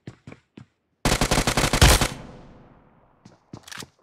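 An automatic rifle fires a rapid burst that echoes away.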